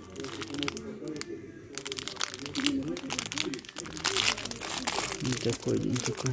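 Plastic wrapping crinkles in a hand.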